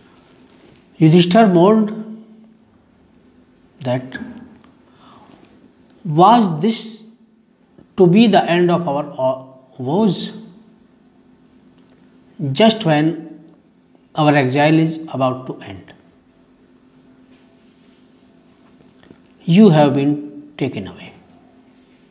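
A middle-aged man reads aloud slowly and clearly, close by, with pauses between phrases.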